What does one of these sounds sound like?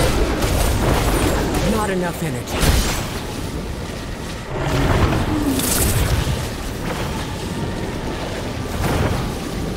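A magic beam hums and crackles.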